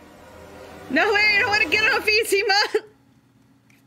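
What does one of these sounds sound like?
A young woman squeals and talks excitedly into a close microphone.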